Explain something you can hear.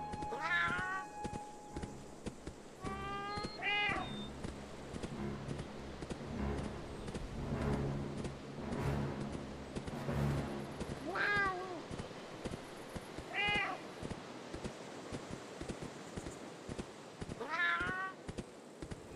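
A large animal lets out short high yelping calls.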